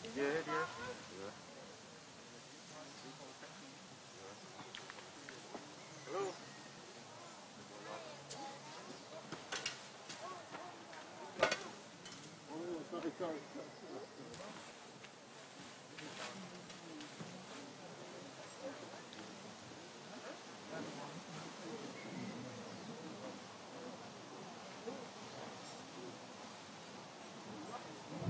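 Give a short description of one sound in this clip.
Several men talk quietly nearby outdoors.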